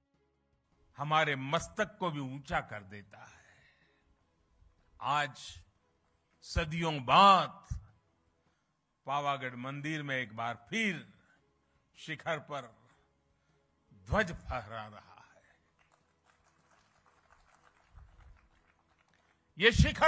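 An elderly man speaks slowly and forcefully into a microphone over loudspeakers.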